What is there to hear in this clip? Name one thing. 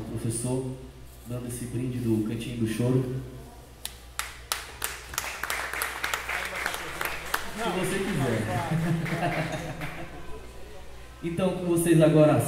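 A small band plays lively music on trumpets.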